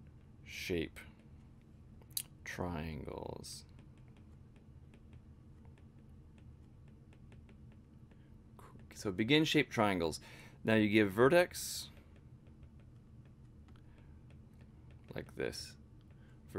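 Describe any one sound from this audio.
A young man speaks calmly into a nearby microphone.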